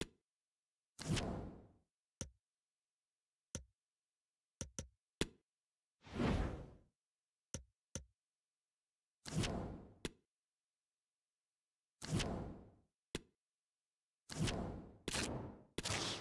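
Soft whooshes sweep by as menus change.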